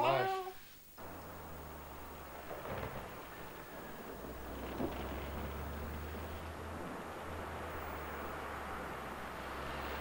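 A car engine idles steadily outdoors.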